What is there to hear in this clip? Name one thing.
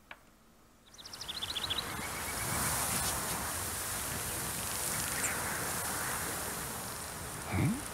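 Wind blows steadily across an open field.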